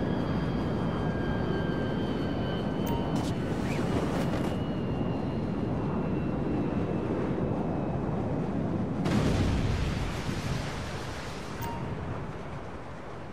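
Wind rushes loudly past a falling skydiver.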